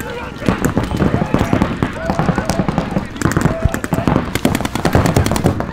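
Paintball guns fire in quick bursts of sharp pops.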